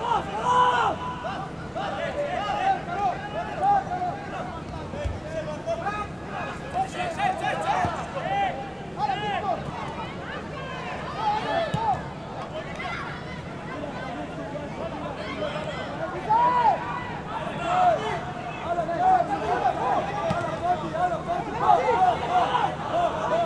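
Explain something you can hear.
A football thuds as players kick it across the field.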